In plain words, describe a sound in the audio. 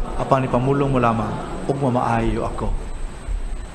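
A man chants calmly through a microphone.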